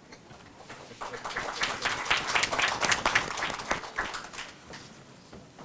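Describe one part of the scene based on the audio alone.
Several people clap their hands in a large room.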